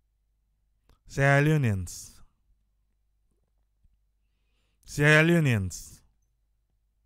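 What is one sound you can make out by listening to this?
An elderly man speaks through a microphone in short, emphatic phrases.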